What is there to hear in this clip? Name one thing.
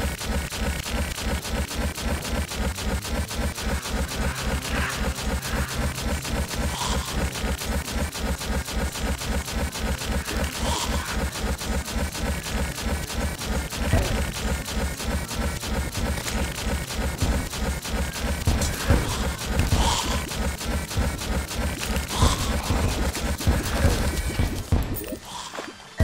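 Fast, driving game music plays with a heavy, steady beat.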